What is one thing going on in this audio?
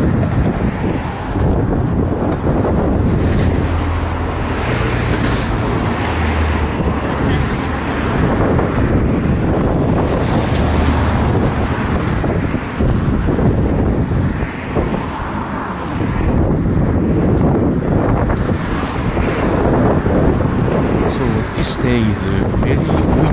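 Strong wind buffets and roars loudly outdoors.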